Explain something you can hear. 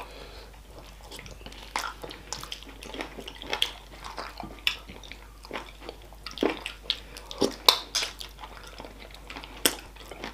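A man chews and slurps food loudly close to a microphone.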